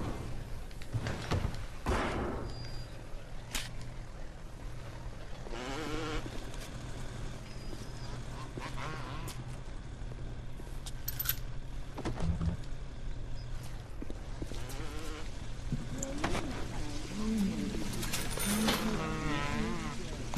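Electricity crackles and buzzes softly around a hand.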